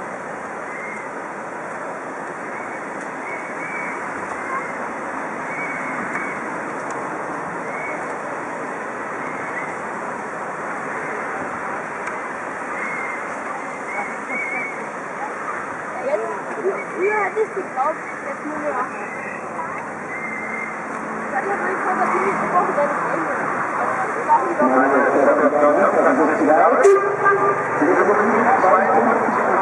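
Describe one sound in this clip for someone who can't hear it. A crowd of people chatters outdoors at a distance, growing livelier and closer.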